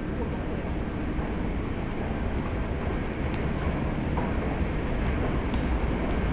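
An escalator hums steadily nearby.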